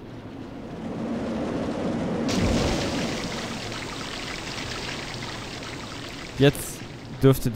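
Wind rushes past a speeding roller coaster.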